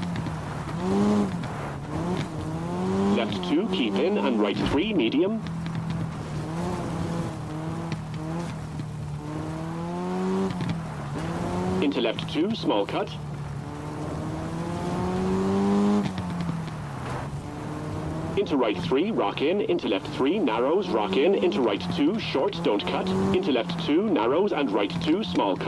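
A rally car engine revs hard, rising and falling as the gears change.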